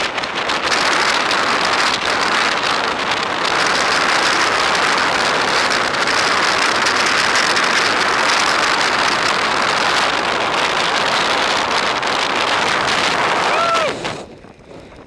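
A snowboard scrapes and hisses loudly over snow.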